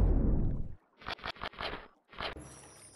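A shark bites with a series of crunching thuds.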